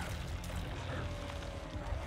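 A man grunts and strains.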